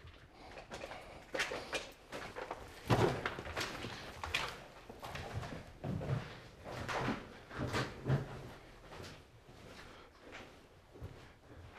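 Footsteps scuff and tap on a hard floor.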